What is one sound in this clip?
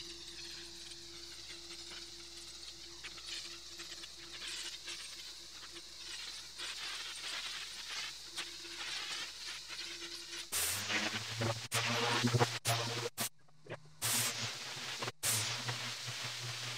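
A pressure washer sprays water hard against concrete with a loud hiss.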